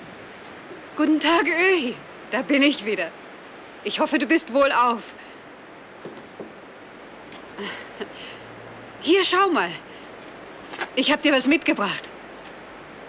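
A woman speaks brightly and with animation nearby.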